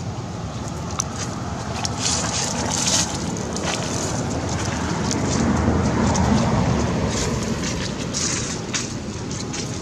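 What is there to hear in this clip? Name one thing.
A monkey's feet rustle through dry leaves on the ground.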